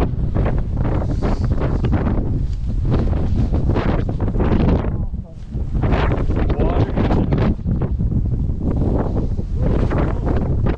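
Strong wind gusts and buffets the microphone outdoors.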